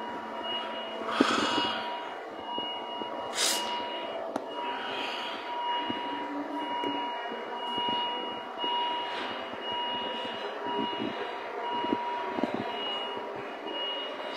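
A man talks close to a phone microphone.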